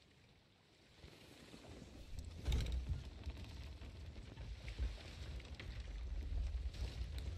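Waves wash against a wooden ship.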